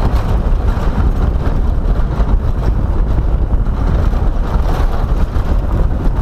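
Tyres rattle and bump over cobblestones.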